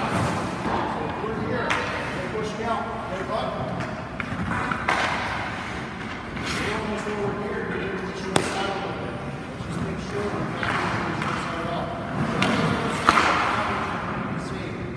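Ice skates scrape and carve on ice.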